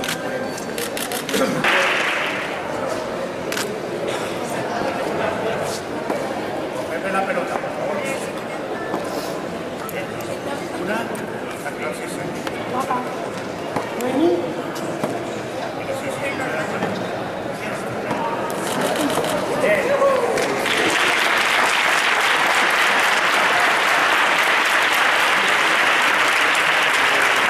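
A crowd of girls and adults chatters in an echoing hall.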